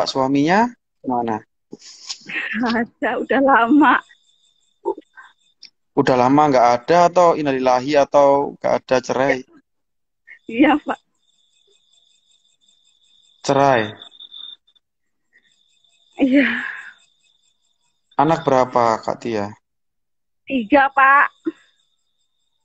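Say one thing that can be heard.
A young man talks calmly over an online call.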